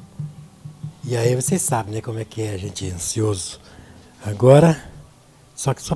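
A man talks calmly close to a microphone.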